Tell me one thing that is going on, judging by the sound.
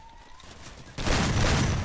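A gun fires a rapid, loud burst of shots.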